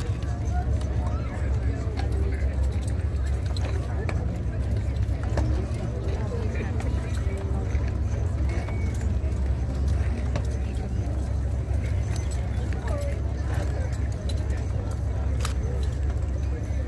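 Horse hooves clop now and then on pavement.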